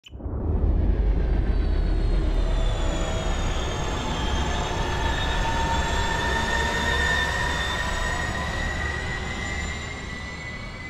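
A spaceship engine roars with a deep rumble and a whining hum as it flies past.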